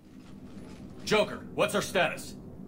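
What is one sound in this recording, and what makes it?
A man speaks in a low, serious voice.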